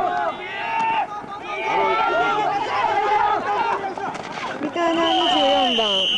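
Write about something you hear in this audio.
Football players collide with thuds.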